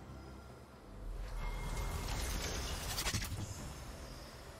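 Game effects whoosh and crackle as a character casts a spell.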